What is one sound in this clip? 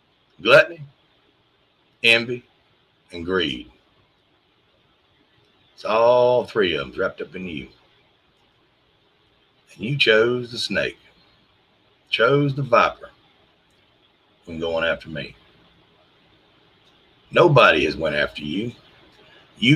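A middle-aged man speaks calmly in short phrases into a microphone, heard as if over an online call.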